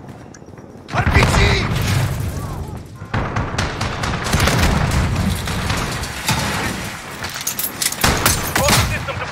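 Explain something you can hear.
A rifle fires loud rapid bursts of gunshots.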